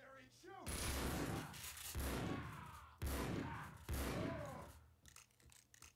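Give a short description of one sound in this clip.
A shotgun fires loud booming blasts that echo down a hall.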